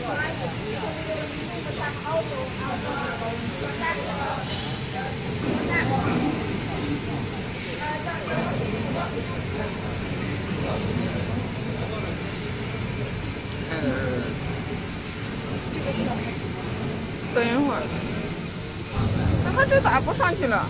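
Metal mesh conveyor belts rattle and hum steadily as they run.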